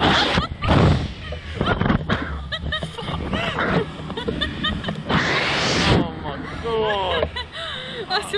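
A young man laughs and shouts close by.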